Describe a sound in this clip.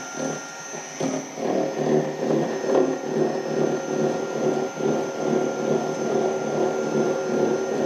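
A small milling machine cuts metal with a steady grinding whir.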